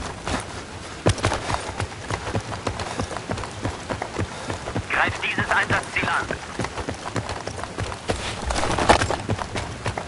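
Footsteps tread quickly over hard ground and rubble.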